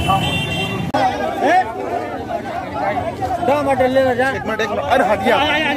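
A young man shouts slogans loudly.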